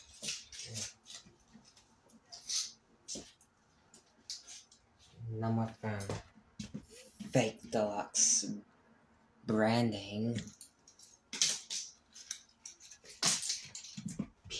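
Plastic toy bricks clatter and rattle on a hard floor.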